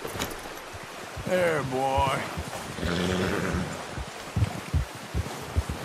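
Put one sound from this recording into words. A horse's hooves thud through snow.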